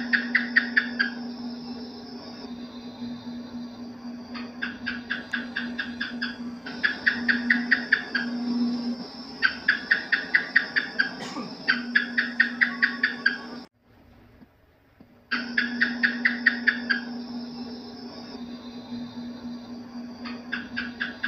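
A gecko chirps in rapid bursts of clicks.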